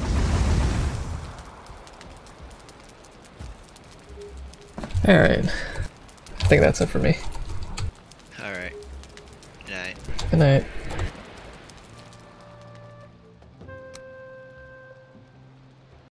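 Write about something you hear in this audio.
A fire crackles in a hearth.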